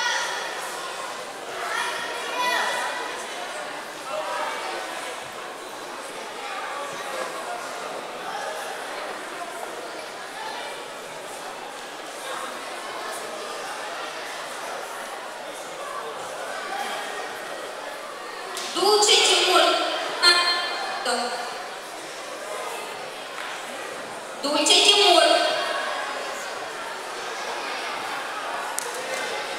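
People in a crowd chatter in a large echoing hall.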